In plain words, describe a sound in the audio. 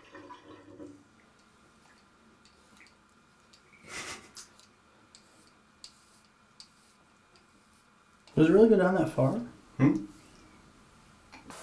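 A razor scrapes over skin.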